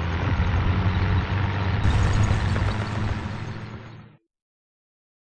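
A tank engine rumbles and its tracks clank as it rolls past.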